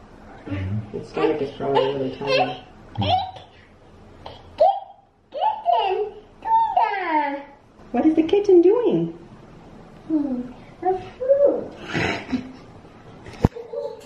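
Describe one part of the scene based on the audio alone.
A small boy babbles and chatters.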